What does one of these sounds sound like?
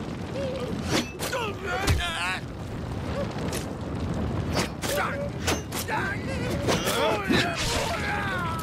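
Swords clash in sharp metallic strikes.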